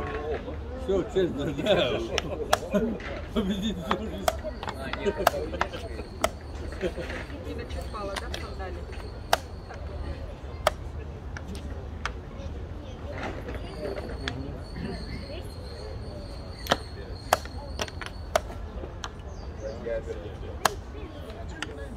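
Chess pieces clack onto a board.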